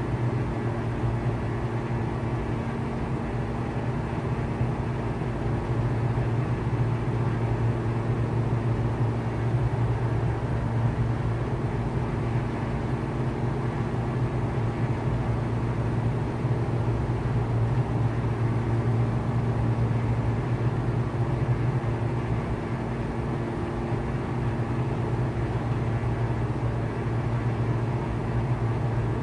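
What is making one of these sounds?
A small propeller plane's engine drones steadily from inside the cabin.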